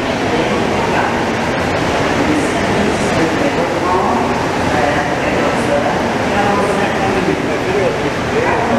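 A rubber-tyred metro train rolls past a platform in an echoing underground station.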